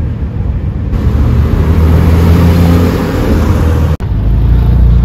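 A sports car engine roars as the car speeds past.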